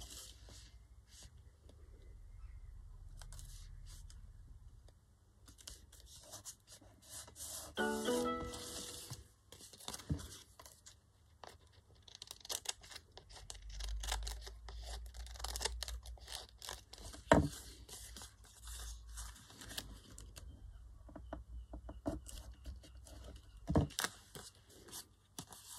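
Paper rustles and crinkles as it is folded and handled.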